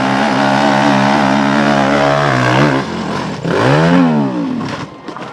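A motorcycle engine revs loudly and roars.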